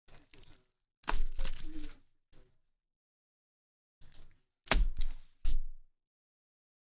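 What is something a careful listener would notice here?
A card pack is set down on a soft mat with a light tap.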